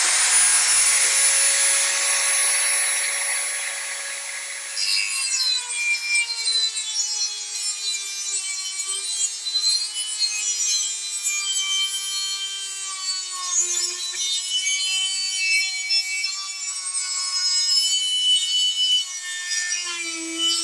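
A small rotary tool whines at high speed and grinds against metal.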